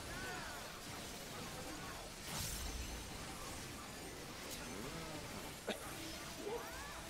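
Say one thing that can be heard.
Game spell effects whoosh and burst.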